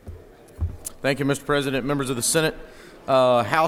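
A man speaks formally into a microphone in a large hall.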